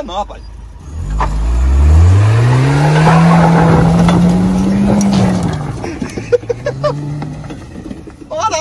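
A car engine revs hard and roars as the car speeds away.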